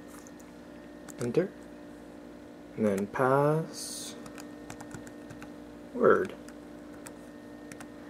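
Fingers tap on laptop keys.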